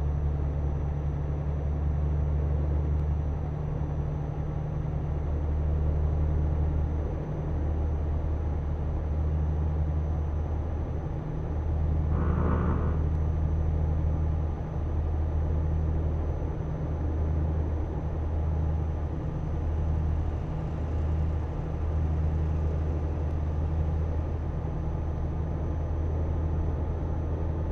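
A truck engine drones steadily with a low rumble.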